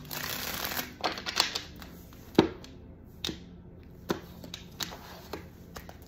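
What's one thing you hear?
Cards tap and slap down onto a hard tabletop.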